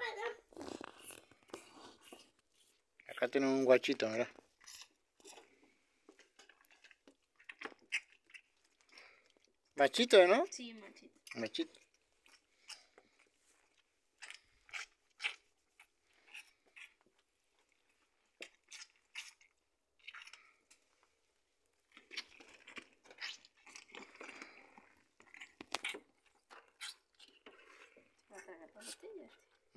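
A calf sucks and slurps noisily at a bottle teat.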